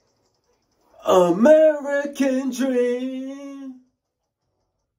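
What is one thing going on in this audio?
A young man sings a long, wavering note into a microphone.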